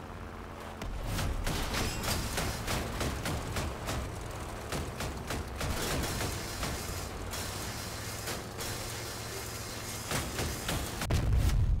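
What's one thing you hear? Weapons clatter and grind against metal in rapid bursts.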